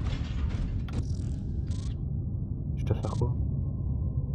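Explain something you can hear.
A menu whooshes open with short electronic chimes.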